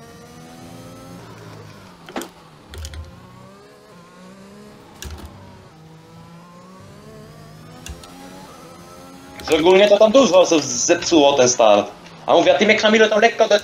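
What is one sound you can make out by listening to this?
A racing car engine whines, its pitch rising and dropping with each gear change.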